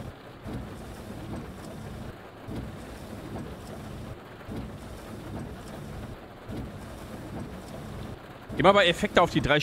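Rain and wind rumble steadily outside a bus.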